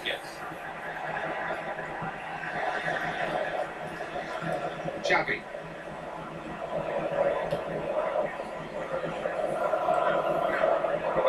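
A stadium crowd roars steadily through a television speaker.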